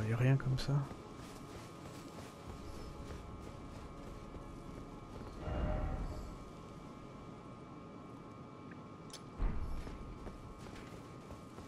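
Footsteps run over stone.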